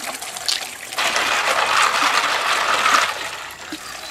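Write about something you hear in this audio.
Water pours from a tap into a basin and splashes.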